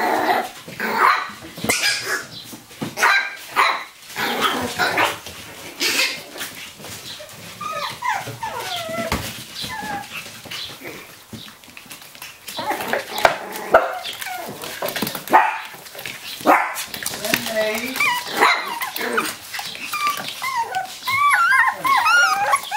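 Puppies' claws scrabble on a tiled floor.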